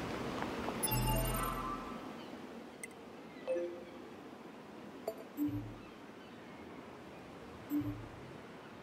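Menu chimes beep softly.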